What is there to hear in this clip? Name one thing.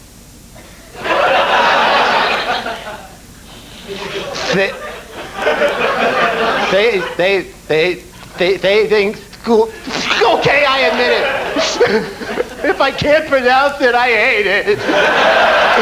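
A middle-aged man speaks calmly, heard through a television broadcast.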